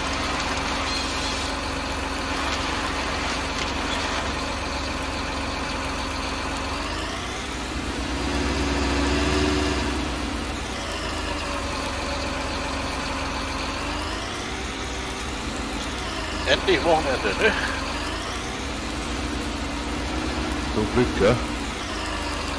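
A heavy machine's engine hums steadily and rises and falls in pitch.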